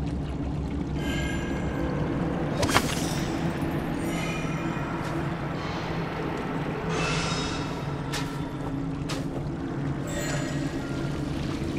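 Magical chimes shimmer and sparkle in bursts.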